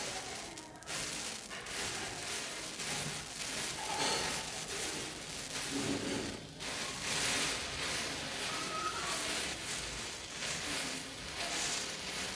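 Burning matches fizz and crackle steadily as the flame spreads.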